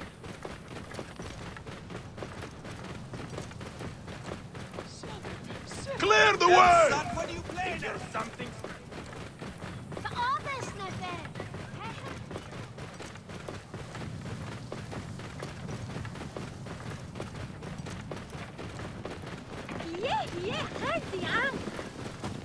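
A camel's hooves thud softly on sand at a steady trot.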